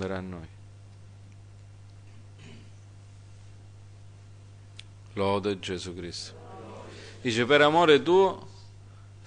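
A middle-aged man speaks calmly with pauses, heard through a microphone.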